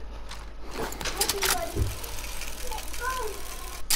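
Hands clatter climbing up a rope.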